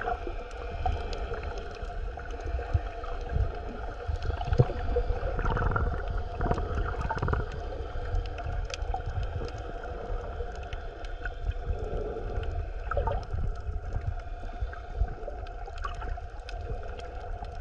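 Water rushes and swirls around a microphone held underwater, muffled and low.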